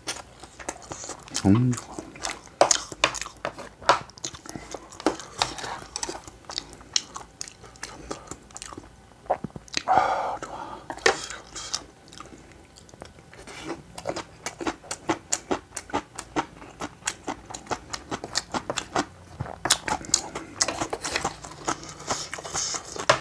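A man eats noisily close to a microphone, chewing and smacking his lips.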